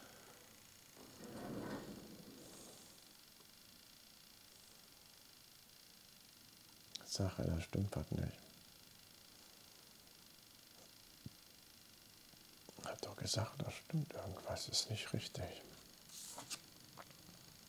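A middle-aged man speaks calmly and close to a microphone, in short bursts.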